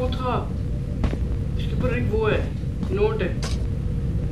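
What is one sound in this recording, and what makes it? A young boy speaks briefly and casually, close to a microphone.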